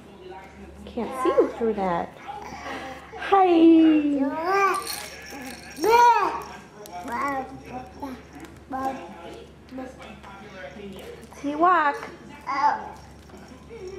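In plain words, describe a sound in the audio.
A baby babbles and squeals nearby.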